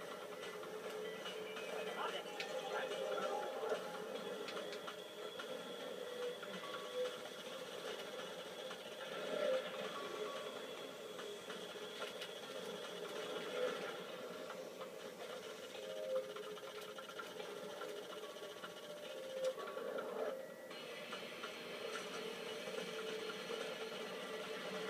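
A video game speedboat engine drones through a television speaker.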